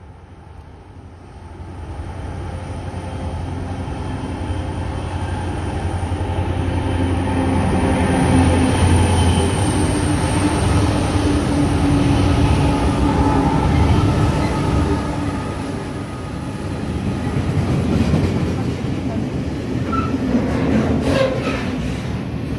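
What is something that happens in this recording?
A heavy freight train rumbles past close by, growing louder.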